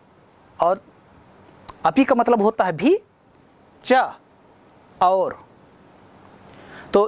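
A man speaks calmly and clearly into a clip-on microphone, explaining in short phrases.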